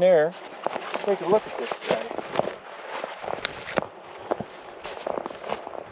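Footsteps crunch through snow and dry brush.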